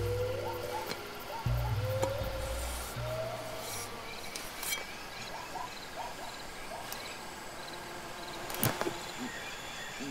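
A blade swishes through the air.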